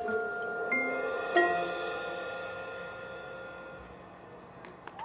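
A marching band holds a chord that slowly fades out.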